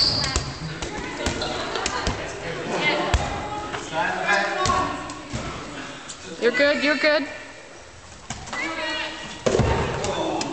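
A ball thuds against a wall and the floor.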